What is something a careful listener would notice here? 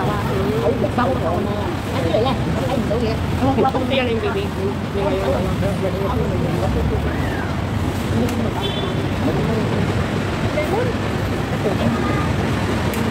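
Young women chat with one another at close range, outdoors.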